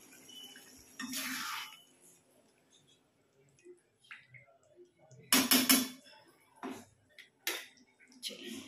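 A metal spatula scrapes and knocks against a pan.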